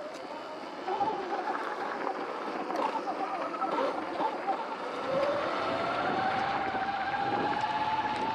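Wind rushes past the microphone while riding downhill.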